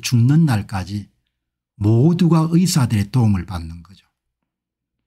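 An older man speaks calmly and close to a microphone.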